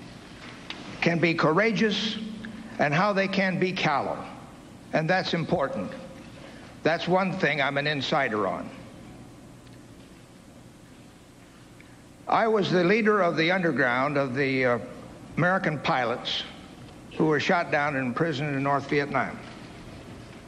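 An elderly man speaks calmly and deliberately into a microphone, with pauses.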